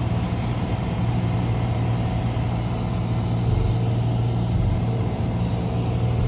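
A small plane's engine drones loudly and steadily from inside the cabin.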